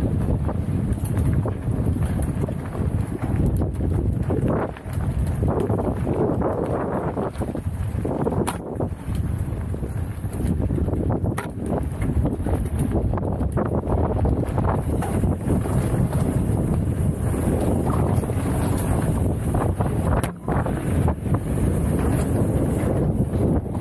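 A bicycle's chain and frame rattle over bumps.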